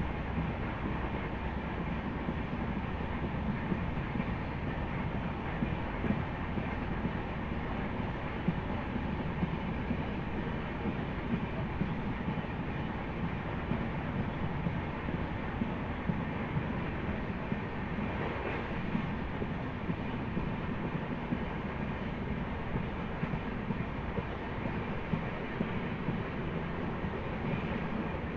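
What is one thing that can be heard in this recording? Wheels clatter rhythmically over rail joints.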